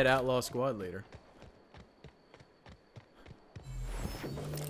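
Footsteps tread softly on dirt.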